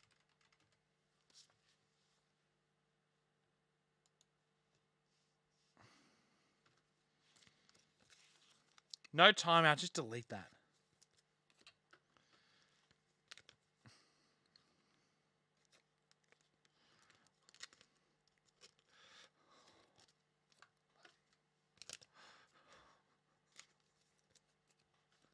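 Card packs rustle and crinkle in hands.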